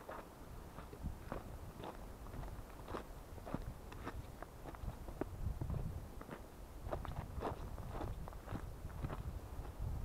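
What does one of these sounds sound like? Footsteps crunch on a stony path.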